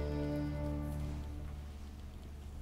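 An orchestra sustains a final chord that fades away.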